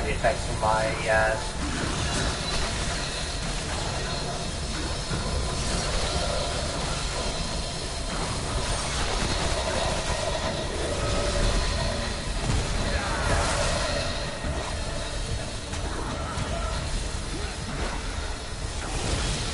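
An energy weapon fires in rapid buzzing bursts.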